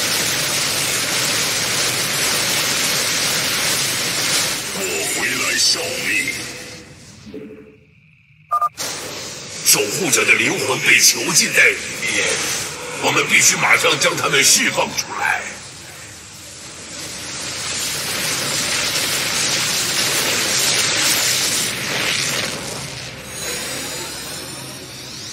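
Electric blasts crackle and zap in a busy battle.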